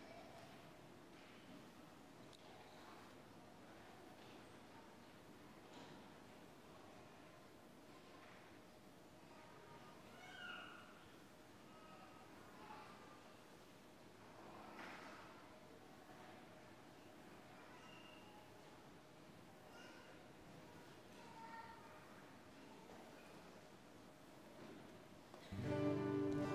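A man speaks softly and faintly in a large echoing hall.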